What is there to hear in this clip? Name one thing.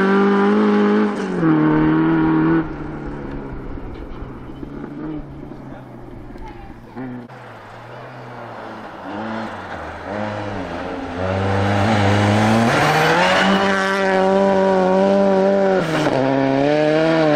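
A rally car engine revs hard, rising and falling in pitch as it roars past.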